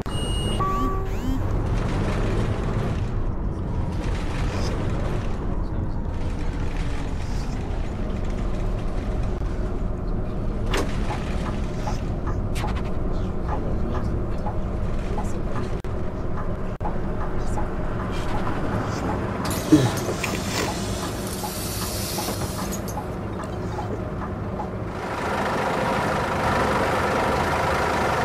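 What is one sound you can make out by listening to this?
A bus engine hums steadily as it drives.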